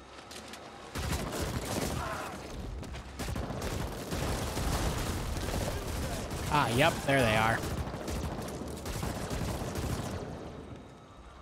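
Rapid gunfire crackles and bursts in a loud battle.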